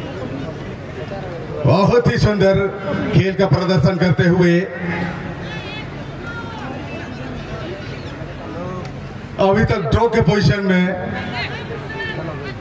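A large crowd murmurs and chatters outdoors.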